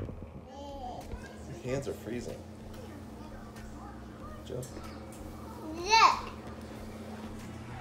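A toddler babbles and squeals in a high voice.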